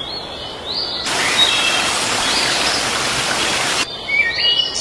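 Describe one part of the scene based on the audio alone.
A waterfall rushes and splashes.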